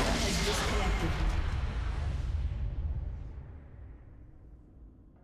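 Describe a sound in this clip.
A huge explosion booms and slowly rumbles away.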